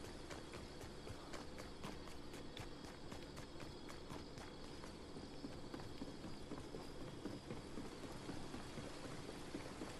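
Footsteps patter quickly on wooden boards.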